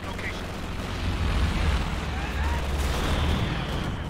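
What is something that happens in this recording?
Explosions rumble and boom in battle.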